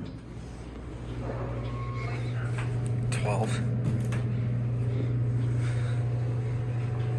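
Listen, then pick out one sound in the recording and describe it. A traction elevator car hums as it travels.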